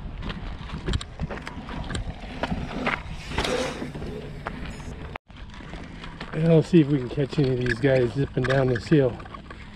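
Bicycle tyres crunch and rattle over rough dirt.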